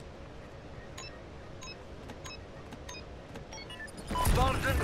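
An electronic device beeps in a quick, even rhythm.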